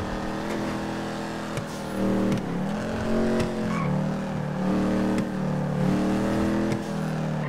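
A car engine drones and revs up and down repeatedly.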